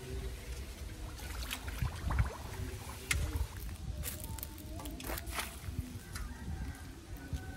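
Shallow water splashes and sloshes from a scooping metal bowl.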